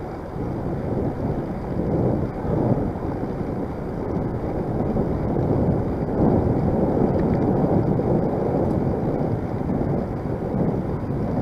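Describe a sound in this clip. Tyres roll over a paved path.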